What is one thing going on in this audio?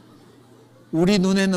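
A man speaks into a microphone, calmly and close.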